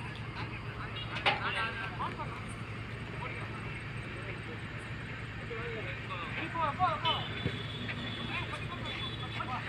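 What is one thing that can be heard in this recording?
Men shout to each other from a distance outdoors.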